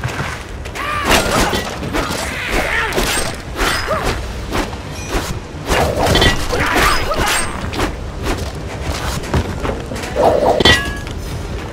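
Heavy weapon blows thud and clash in a fight.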